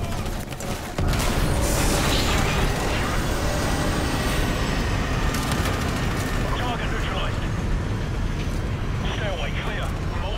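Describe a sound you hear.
An explosion booms and a loud rushing roar follows.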